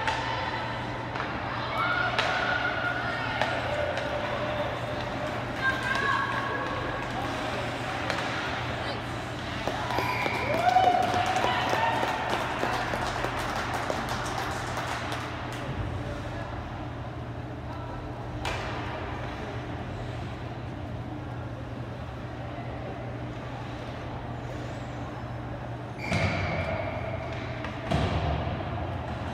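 Spectators shout encouragement in a large echoing rink.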